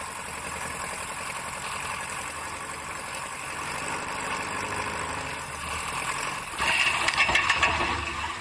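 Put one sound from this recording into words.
A small plane's propeller engine drones steadily up close.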